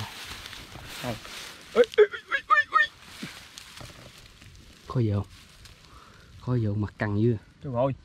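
Grass rustles under a man's hands.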